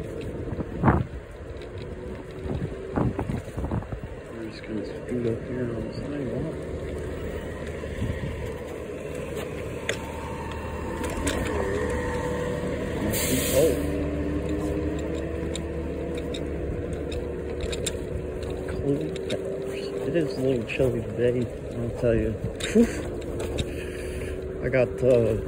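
Small wheels rumble over rough pavement.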